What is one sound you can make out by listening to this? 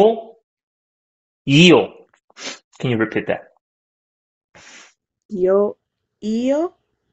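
A woman speaks with animation over an online call, in short bursts with rising tones.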